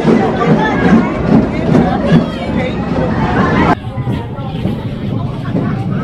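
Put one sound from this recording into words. Young riders cheer and shout excitedly.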